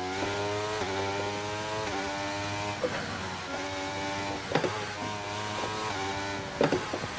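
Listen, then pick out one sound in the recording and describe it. A racing car engine screams at high revs, rising and dropping as it shifts through the gears.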